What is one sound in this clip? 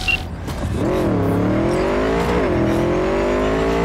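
A motorcycle engine revs up and down with a rising whine.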